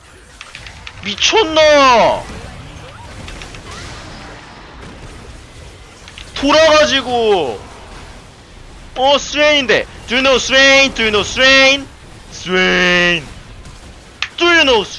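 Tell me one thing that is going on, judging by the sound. A young man speaks with animation into a microphone, in short bursts.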